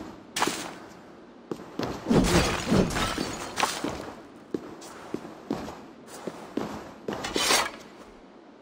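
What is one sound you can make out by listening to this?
Clay pots shatter and crash onto a stone floor.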